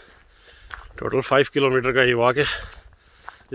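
A man speaks close to a microphone, outdoors.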